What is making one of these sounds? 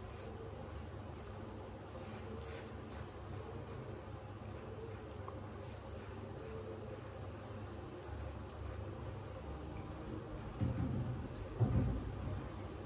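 A razor scrapes across stubble in short strokes, close by.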